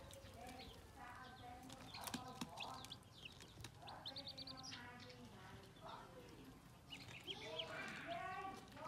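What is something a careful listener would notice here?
Many chicks peep and cheep shrilly up close.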